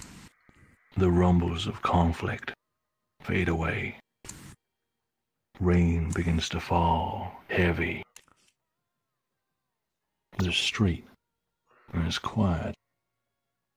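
A man talks casually over an online voice chat, in short bursts.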